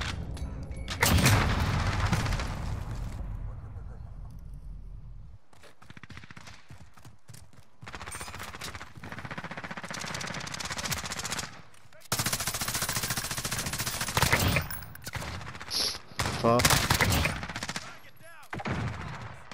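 Rapid gunfire cracks in short bursts.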